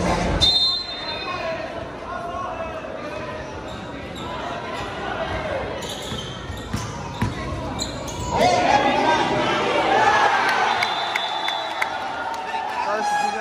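A large crowd chatters in a big echoing gym.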